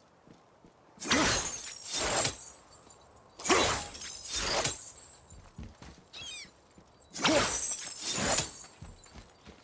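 A heavy metal axe strikes hard several times with loud clangs.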